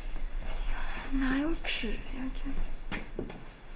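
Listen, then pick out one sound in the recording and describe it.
A young woman speaks quietly to herself, close by.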